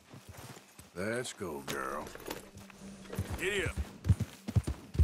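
A horse snorts and whinnies.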